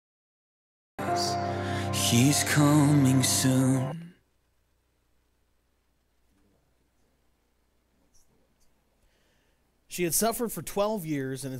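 A choir sings in an echoing hall.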